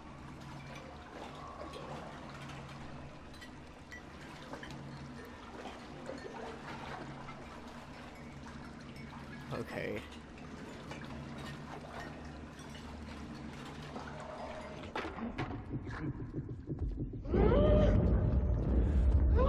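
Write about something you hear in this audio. Water sloshes and splashes in a sink.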